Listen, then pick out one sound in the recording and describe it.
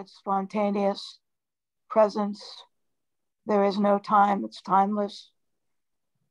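An elderly woman speaks calmly over a phone or online call.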